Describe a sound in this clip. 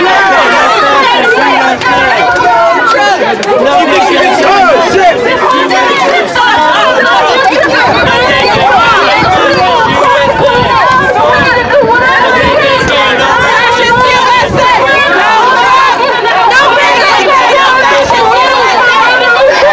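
A crowd of people talk and shout over one another close by, outdoors.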